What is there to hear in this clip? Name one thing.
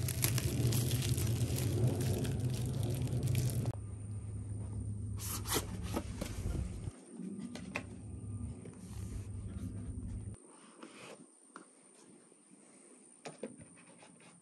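A cardboard box rubs and taps in a person's hands.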